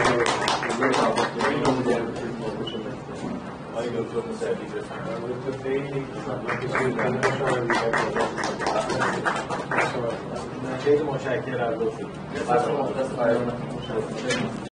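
Men talk in a room, heard from a distance.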